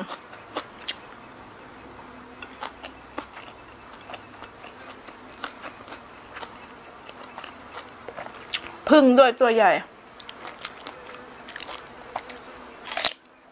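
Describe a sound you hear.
A young woman crunches and chews food close to a microphone.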